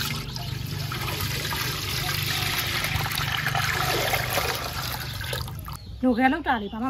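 Liquid pours and splashes into a metal pot.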